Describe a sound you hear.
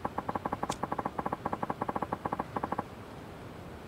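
Rapid short electronic blips tick in quick succession, then stop.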